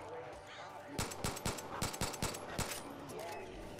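Pistol shots ring out in a quick burst.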